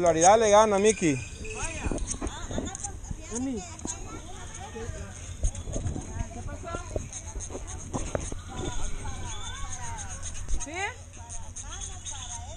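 Women and children chatter nearby outdoors.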